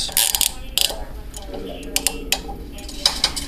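Handcuffs click and ratchet shut.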